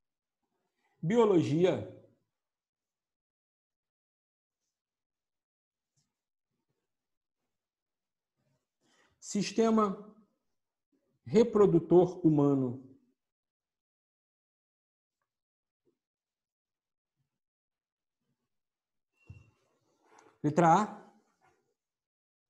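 A middle-aged man speaks calmly in short bursts, close by, with pauses in between.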